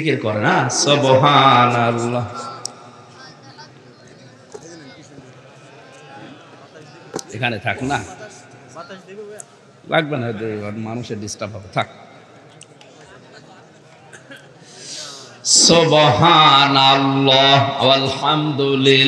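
A man chants loudly through a microphone and loudspeakers, with echo.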